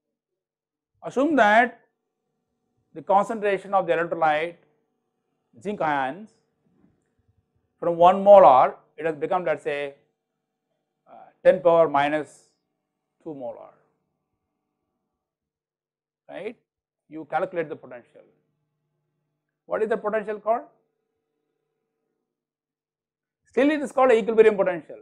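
An older man speaks calmly into a close microphone, in short phrases with pauses.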